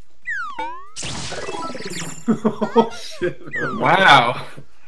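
A cheerful electronic victory jingle plays from a game.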